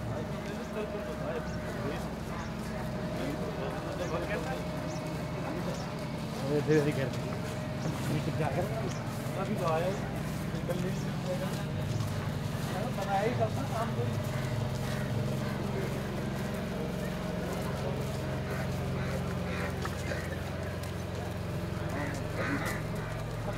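Footsteps scuff on stone pavement.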